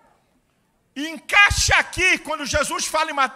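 A middle-aged man preaches forcefully into a microphone.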